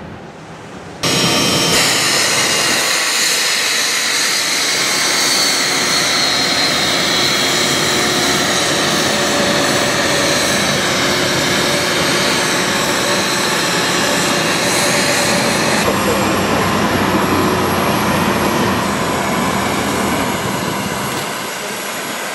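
A jet engine whines loudly as an airliner taxis close by.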